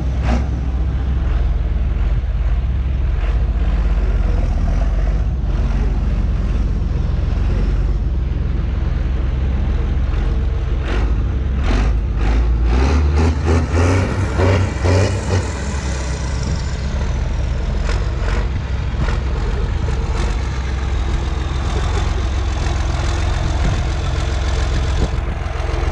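A large tractor engine rumbles loudly close by.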